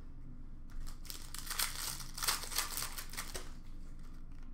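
A plastic card pack crinkles and rustles in hands.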